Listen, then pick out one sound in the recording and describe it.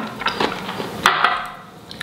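A fork clinks against a small glass bowl.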